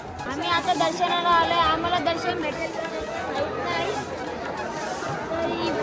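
A boy talks excitedly, close by.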